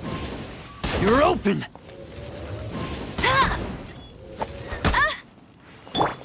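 Fiery blasts burst and crackle.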